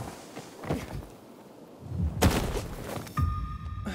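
A heavy landing thumps after a jump.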